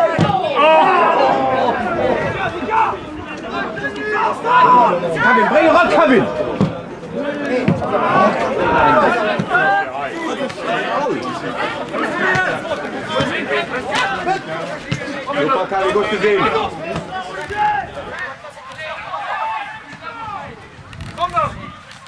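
A football is kicked across a grass pitch outdoors.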